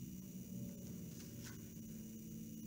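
A page of a book rustles as it turns.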